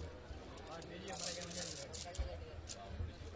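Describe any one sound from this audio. A metal chain rattles.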